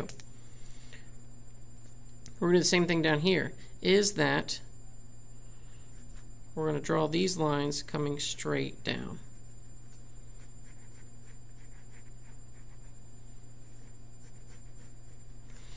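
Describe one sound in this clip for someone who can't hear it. A felt-tip pen scratches softly on paper.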